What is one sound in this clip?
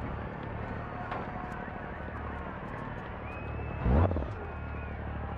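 A rally car engine idles with a low rumble as the car rolls slowly forward.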